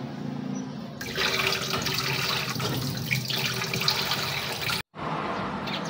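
Tap water runs into a frying pan.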